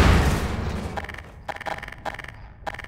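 A weapon selection menu clicks several times.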